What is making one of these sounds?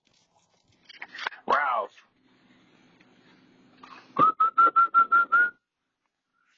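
A dog yelps and barks in quick bursts outdoors.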